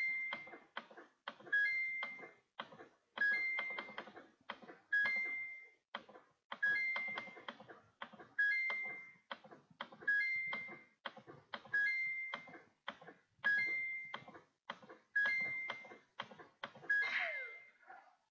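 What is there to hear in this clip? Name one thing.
A video game gives a short chime again and again as points are scored.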